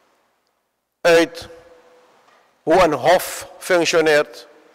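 A middle-aged man speaks formally into a microphone, heard through a loudspeaker in an echoing hall.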